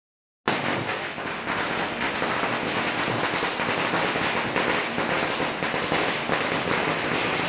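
Firecrackers crackle rapidly in a dense, continuous burst nearby.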